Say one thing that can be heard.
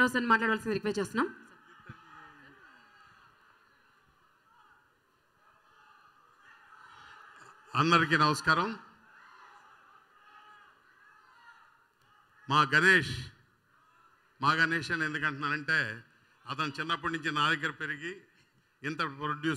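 A middle-aged man speaks into a microphone over loudspeakers in a large echoing hall.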